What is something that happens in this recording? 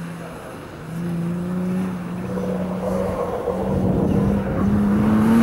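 A car engine revs hard and rises in pitch.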